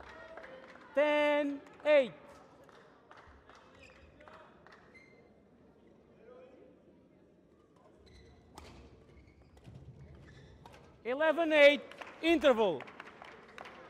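Players shout loudly in a large echoing hall.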